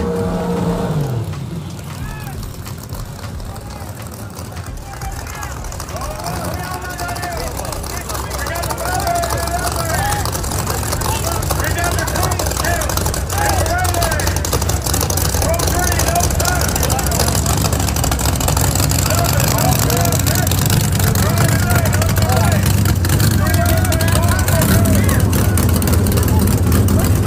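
Race car engines rumble loudly at idle.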